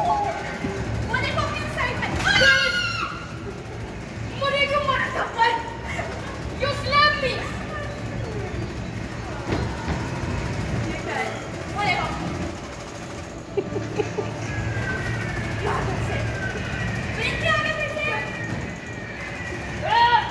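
A boy calls out excitedly nearby.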